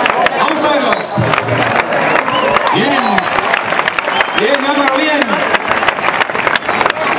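A large outdoor crowd shouts and cheers loudly.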